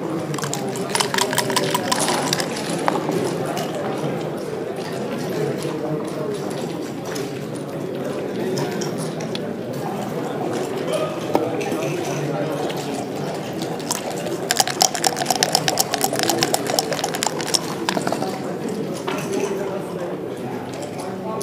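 Dice rattle and tumble across a wooden board.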